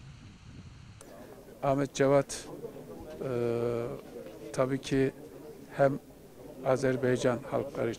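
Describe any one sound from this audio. A middle-aged man speaks calmly and close into microphones.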